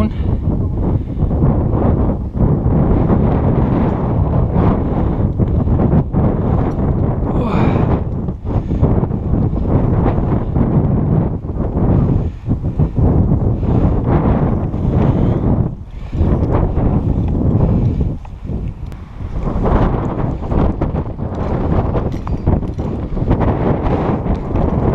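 Footsteps crunch on a rocky path.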